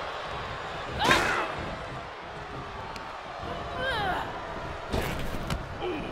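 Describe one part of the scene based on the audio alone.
Bodies thud onto a ring mat.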